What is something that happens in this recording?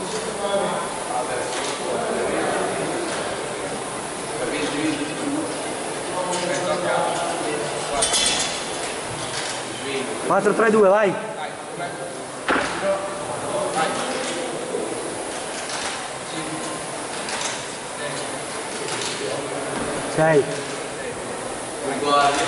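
Men talk and call out in an echoing hall.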